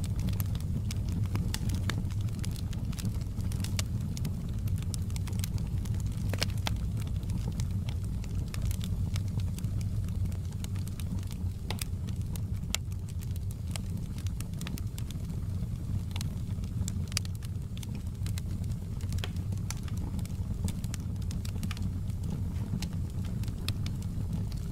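A wood fire crackles and pops with sharp snaps.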